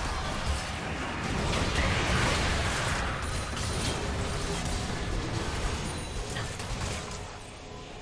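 Video game spells blast and crackle in a hectic battle.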